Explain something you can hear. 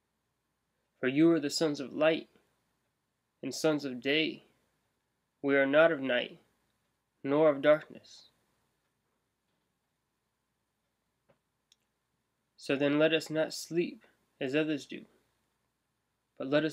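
A young man speaks calmly and close up, in short bursts with pauses.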